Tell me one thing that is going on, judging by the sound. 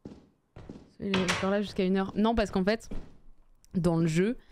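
A young woman speaks with animation into a nearby microphone.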